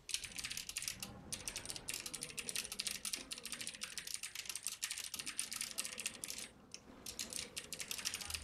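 Rapid crackling and clashing spell effects ring out in a battle.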